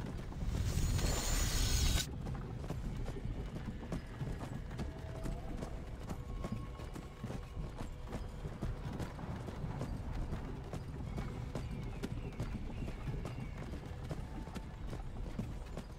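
A wooden cart rumbles and knocks along a rough track.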